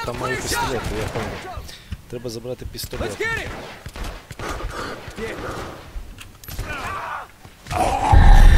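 A man grunts and shouts.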